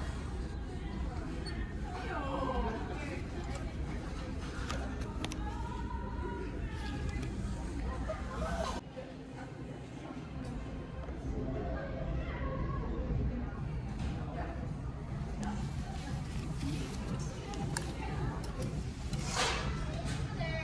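Fabric rustles as hands rub and handle clothing.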